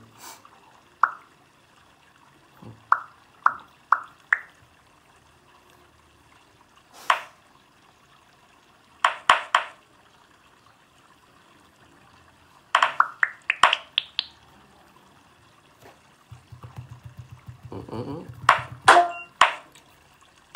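A game on a phone plays short pops and chimes through a small speaker, one after another.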